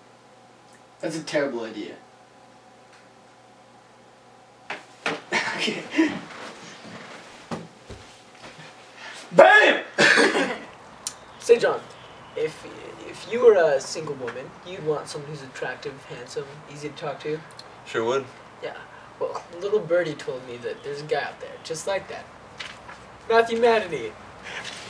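A young man speaks casually up close.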